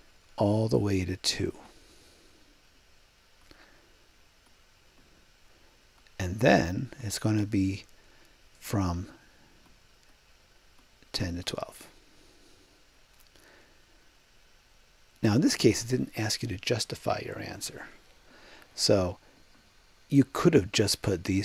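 A man explains calmly through a close microphone, in short bursts with pauses.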